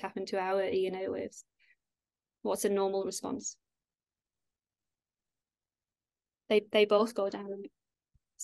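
A woman speaks calmly through a microphone in short phrases with pauses.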